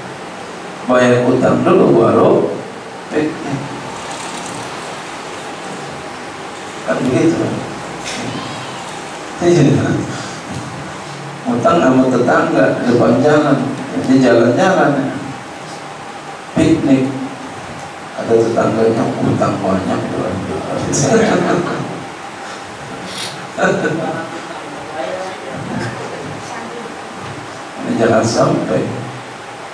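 A man speaks with animation through a microphone in a room that echoes.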